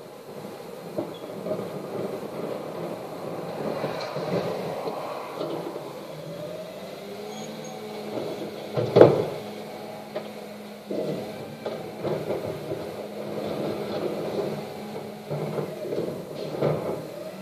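Wheelie bins clatter and bang as they are emptied.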